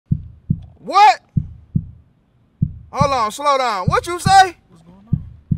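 A young man talks loudly and with animation, close by.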